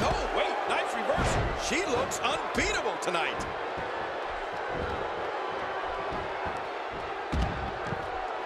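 A heavy thud rings out as a body slams onto a wrestling mat.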